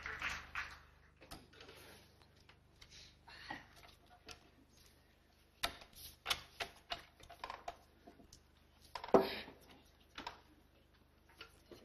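Playing cards slap onto a wooden table.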